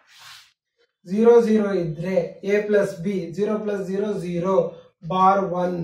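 A man speaks steadily and clearly nearby.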